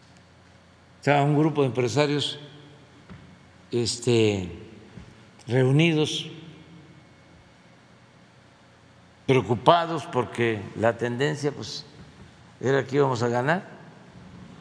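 An elderly man speaks calmly into a microphone, in short bursts with pauses.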